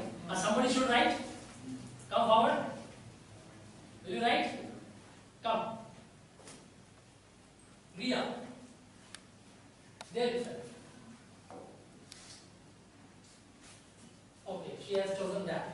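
A man speaks in bursts to a room, in a loud, teaching voice.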